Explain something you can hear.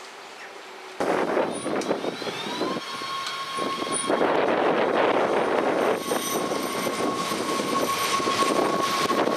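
A train rumbles past close by, its wheels clattering on the rails.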